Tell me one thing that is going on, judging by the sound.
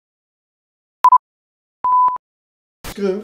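Short high beeps mark a countdown.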